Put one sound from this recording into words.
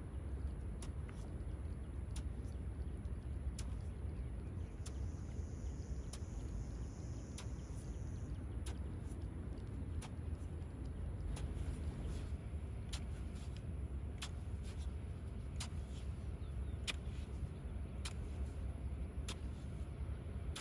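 A metal rake scrapes and clicks through wet mud and grass.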